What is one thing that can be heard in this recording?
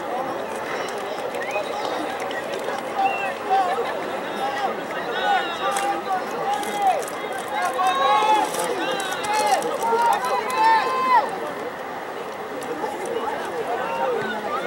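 Young men shout and call out to each other across an open field.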